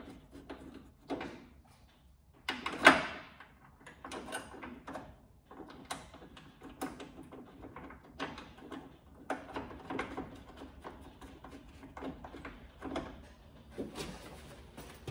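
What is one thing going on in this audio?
Hands tap and scrape on a metal tailgate.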